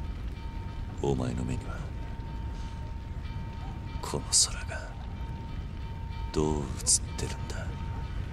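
A man speaks quietly and gravely.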